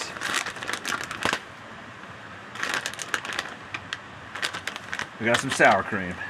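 A packet crinkles in a man's hands.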